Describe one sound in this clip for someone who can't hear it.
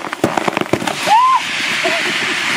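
A young woman cries out excitedly outdoors.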